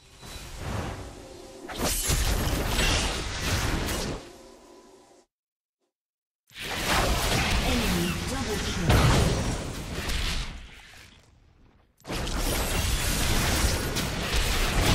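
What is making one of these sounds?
Magic blasts whoosh and crash in a fantasy battle.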